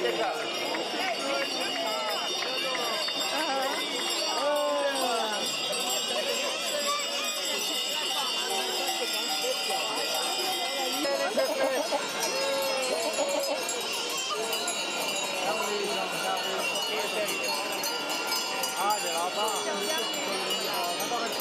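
A crowd of people chatters along a street outdoors.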